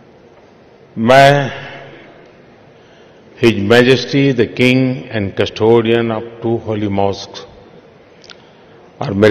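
An elderly man speaks with emphasis through a microphone, his voice echoing in a large hall.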